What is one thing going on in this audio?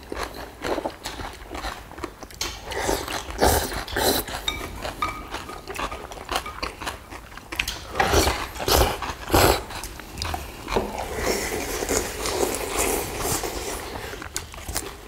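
Several diners slurp noodles loudly, close by.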